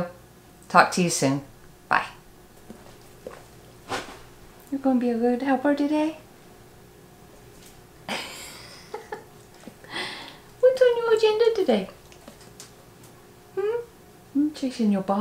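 A woman speaks warmly and close to a microphone.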